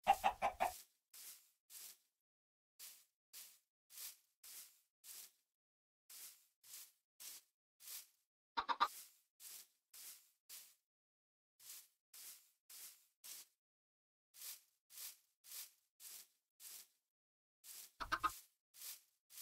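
A chicken clucks now and then.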